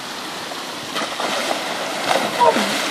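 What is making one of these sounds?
A man splashes heavily into a pond.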